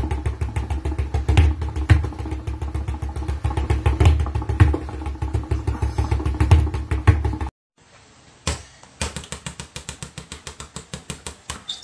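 Basketballs bounce quickly and rhythmically on a hard floor.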